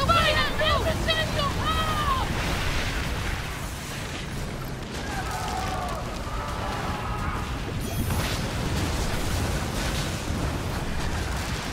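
Cannons fire and explosions boom.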